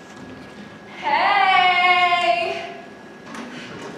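A young woman lets out a long, loud, wavering cry in a large hall.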